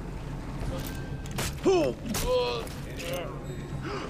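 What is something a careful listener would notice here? Heavy blows thud during a scuffle.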